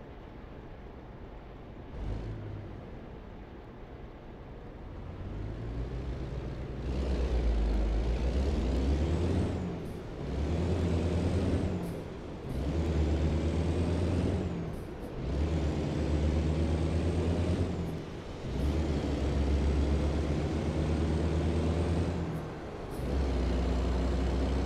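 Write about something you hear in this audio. A truck's diesel engine idles and then roars, rising in pitch and dropping as it shifts through the gears.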